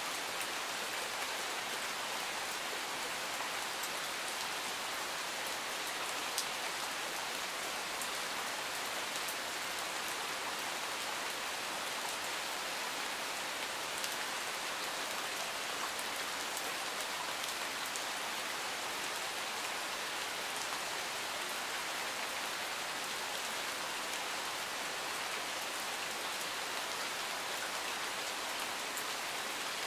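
Steady rain falls and patters on leaves and gravel outdoors.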